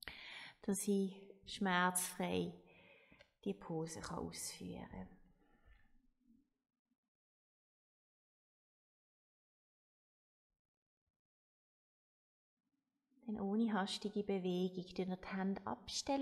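A young woman speaks calmly and softly into a close microphone.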